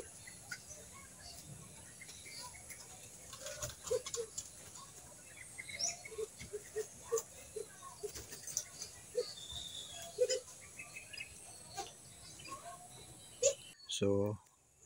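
Caged birds chirp and twitter nearby.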